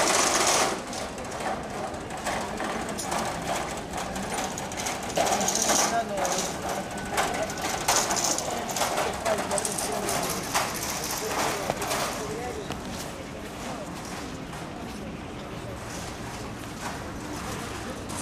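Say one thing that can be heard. Dancers' feet stamp and shuffle on paving stones.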